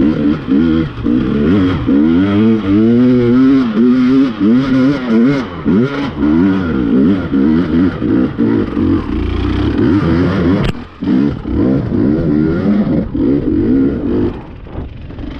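Tyres crunch and skid on loose stones.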